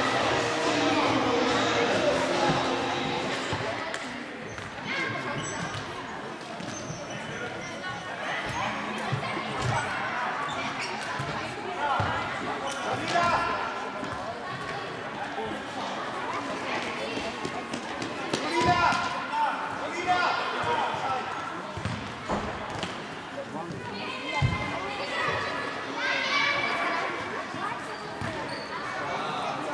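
Adults chatter nearby.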